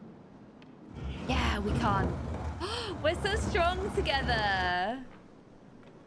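A young woman laughs loudly into a microphone.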